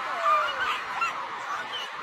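A young woman laughs and shouts close by.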